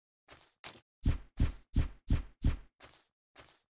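A pickaxe hits blocks with quick, heavy thuds.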